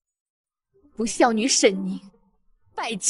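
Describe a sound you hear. A young woman speaks with feeling, close by.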